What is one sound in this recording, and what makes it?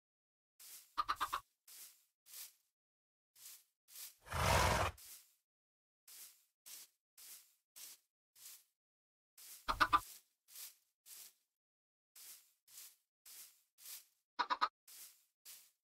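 A chicken clucks nearby.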